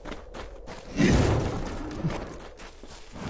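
A fiery blast bursts with a loud boom.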